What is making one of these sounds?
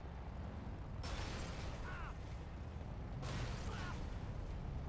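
A truck bangs into another vehicle with loud crashes.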